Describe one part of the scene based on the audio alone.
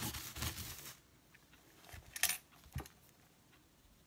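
Paper rustles as a sheet is laid down.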